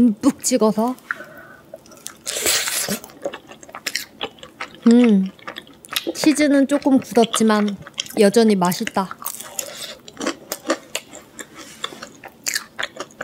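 A young woman bites and chews crunchy pizza with wet, crackling sounds close to a microphone.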